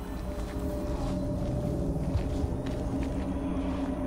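Knees and hands shuffle and knock on a wooden floor.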